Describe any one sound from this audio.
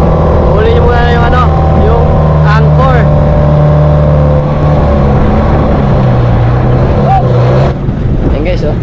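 A boat engine hums steadily and loudly close by.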